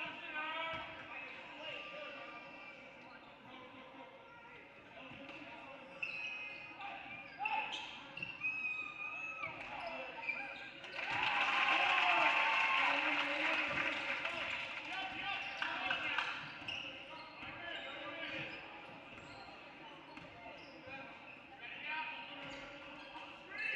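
Players and spectators call out in an echoing gym.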